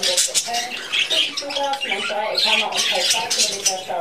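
A budgie's wings flutter briefly.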